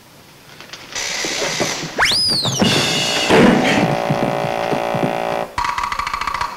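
A man falls heavily to the floor with a crash.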